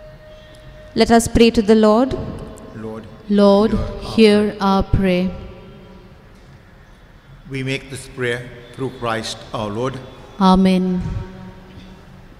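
A man speaks slowly through a microphone in a large echoing hall.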